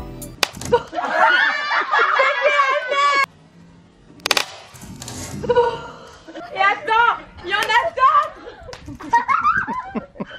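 A young woman shrieks and laughs excitedly close by.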